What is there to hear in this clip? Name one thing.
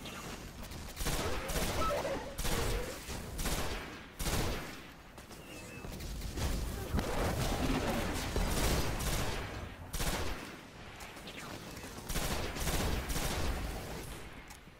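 Heavy guns fire in loud, rapid bursts.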